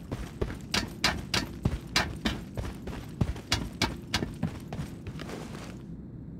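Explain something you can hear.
Heavy footsteps thud quickly on metal stairs and wooden floor.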